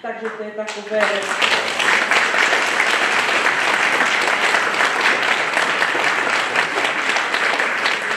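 An audience claps and applauds loudly.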